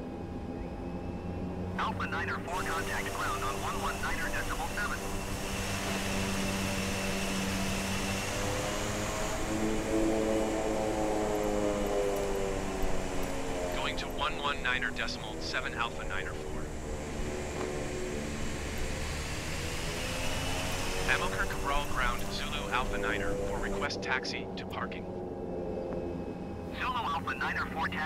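A twin turboprop airliner's engines drone as it taxis.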